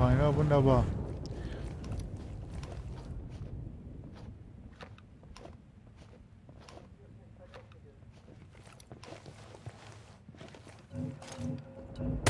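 Footsteps tread softly up a stairway.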